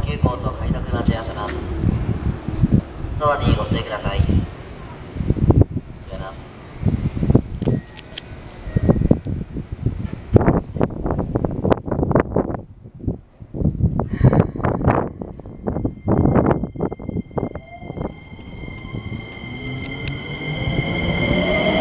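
Train wheels clatter loudly over rail joints as a train rolls past close by.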